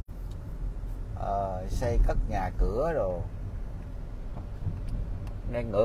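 A car rumbles steadily as it drives along a paved road, heard from inside.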